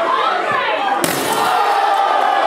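A metal ladder crashes down onto a wrestler.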